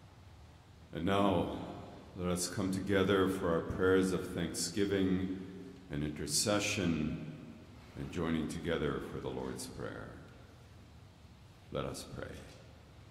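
An older man speaks calmly and slowly into a microphone, echoing in a large hall.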